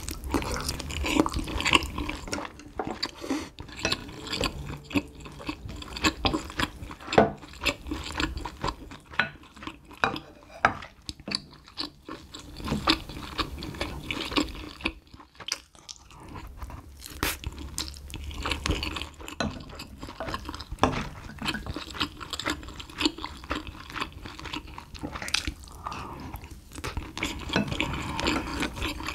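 A young woman chews wet food loudly, close to a microphone.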